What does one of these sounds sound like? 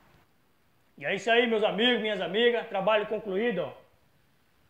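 A man speaks with animation close to the microphone.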